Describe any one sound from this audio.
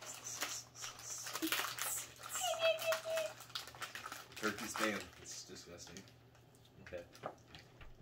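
Foil packaging crinkles and rustles in hands.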